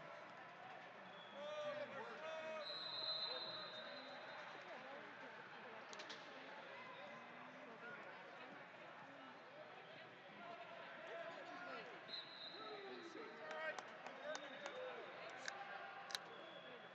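A referee's whistle blows in short shrill bursts.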